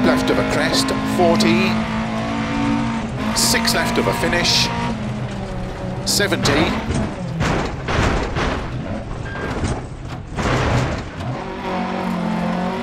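A rally car engine roars and revs.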